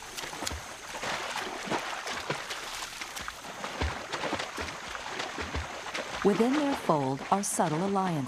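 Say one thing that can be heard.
Animals splash quickly through shallow water.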